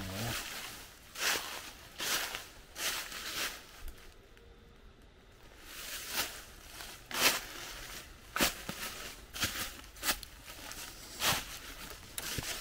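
Footsteps crunch through dry leaves on a path.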